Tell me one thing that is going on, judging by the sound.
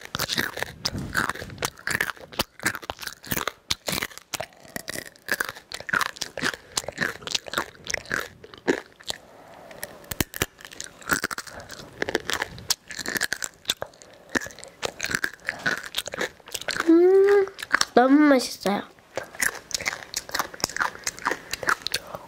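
Small crackling and tapping sounds come very close to a microphone.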